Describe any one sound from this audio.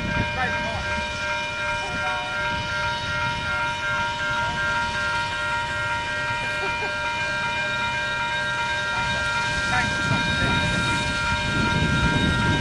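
Steel wheels roll and clank on rails.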